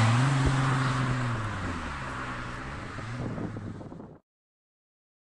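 A car drives past on a road with a rising and falling engine roar.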